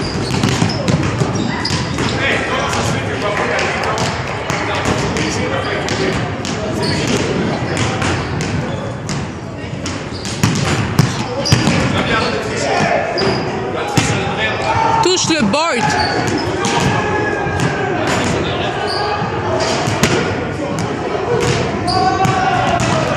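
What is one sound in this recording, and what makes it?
Basketballs bounce on a hardwood floor in a large echoing gym.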